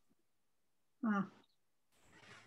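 An elderly woman begins speaking over an online call.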